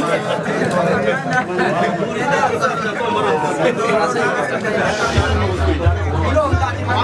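Several men chat together nearby, amid a crowd's murmur.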